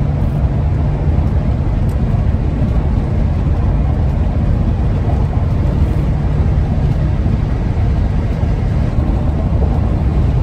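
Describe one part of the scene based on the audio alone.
A car's engine and tyres rumble steadily from inside the car.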